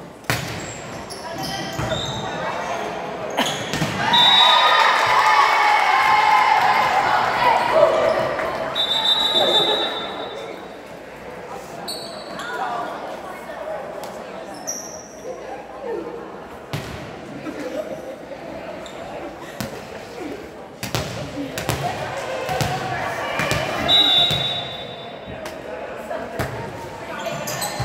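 Young women shout and cheer loudly in a large echoing gym.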